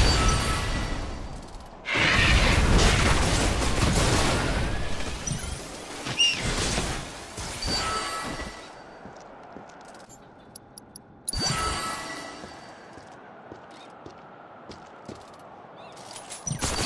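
Energy blasts whoosh and crackle as game characters fight.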